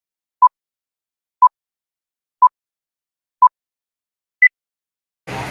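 A countdown beeps once a second, ending on a higher beep.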